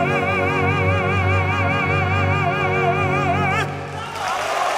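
An orchestra plays a sustained chord.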